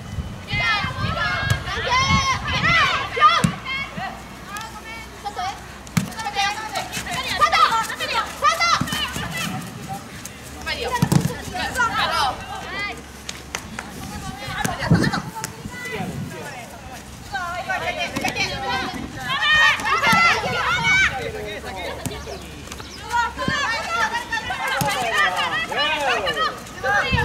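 Young women shout and call out to each other outdoors.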